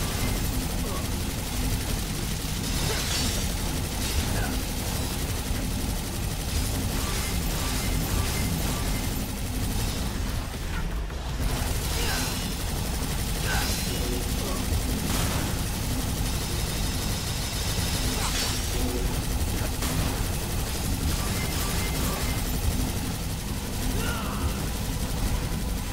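Swords clash and slash in rapid fighting.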